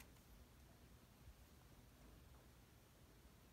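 A playing card slides softly onto a table.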